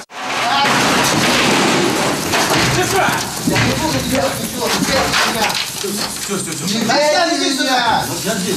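Men shout close by in a struggle.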